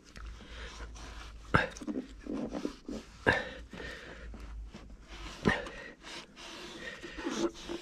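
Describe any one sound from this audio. A cloth rubs and wipes against plastic trim.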